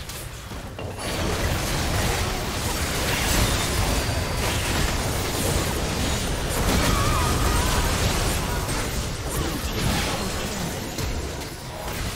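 Magic blasts and weapon clashes crackle in a busy video game battle.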